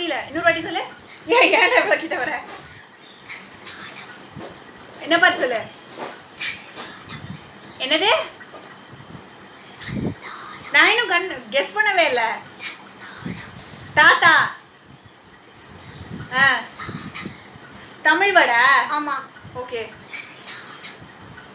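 A woman talks playfully close by.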